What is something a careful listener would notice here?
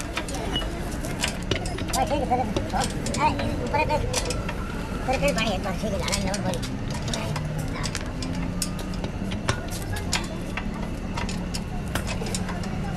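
Metal parts clink and knock against each other.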